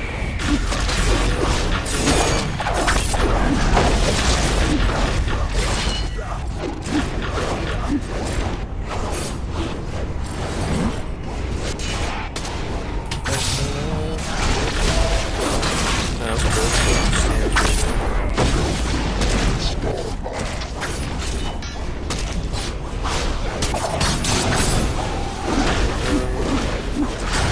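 Weapons clash and strike over and over.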